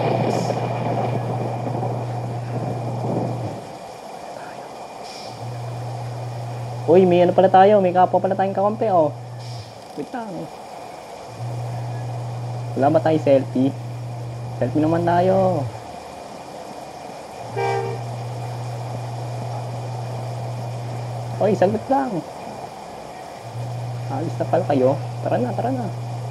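A bus engine idles with a low, steady hum.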